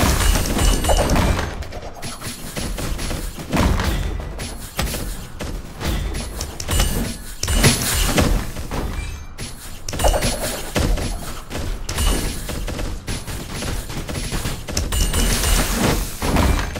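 Game battle sounds of clashing weapons and impacts play rapidly and continuously.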